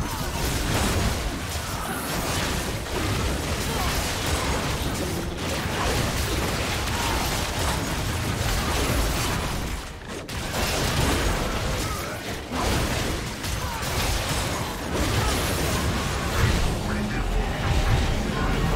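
Game spell effects crackle and boom in a dense, busy mix.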